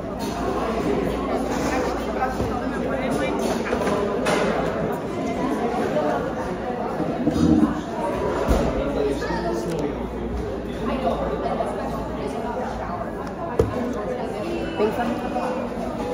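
A crowd of people chatter indistinctly in a busy, echoing room.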